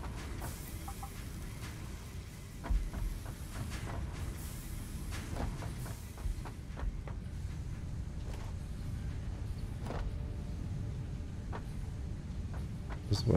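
Machines hum with a low steady rumble.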